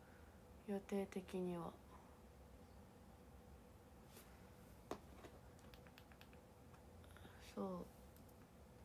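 A young woman speaks briefly and softly, close to a microphone.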